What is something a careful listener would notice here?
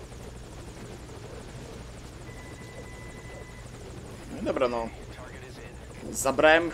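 A helicopter engine hums steadily nearby.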